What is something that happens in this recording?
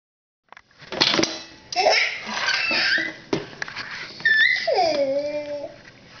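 A baby squeals and babbles happily close by.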